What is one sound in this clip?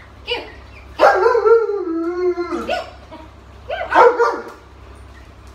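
A large dog whines and howls.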